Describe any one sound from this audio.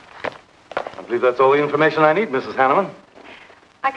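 A woman speaks brightly, close by.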